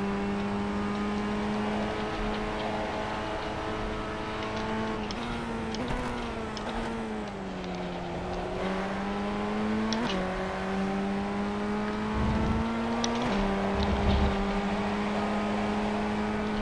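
A racing car engine drones at high revs, dropping in pitch with gear changes and rising again.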